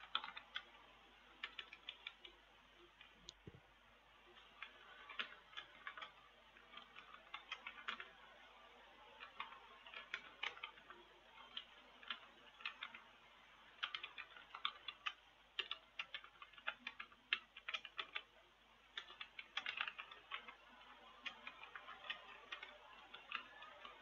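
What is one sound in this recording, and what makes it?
Keys clatter quickly and unevenly on a computer keyboard.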